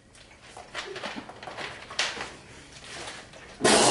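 A young man drinks in gulps from a bottle.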